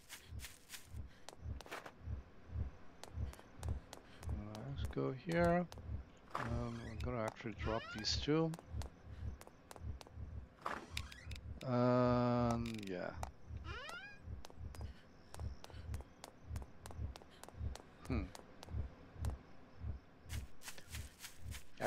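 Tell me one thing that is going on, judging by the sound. Footsteps thump quickly and steadily on hard ground.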